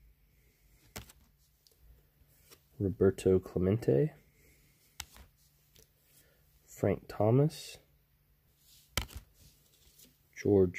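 Trading cards rustle as a hand holds them up.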